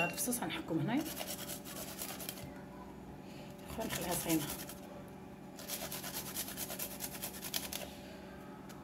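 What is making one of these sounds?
Cheese rasps against a metal grater in quick strokes.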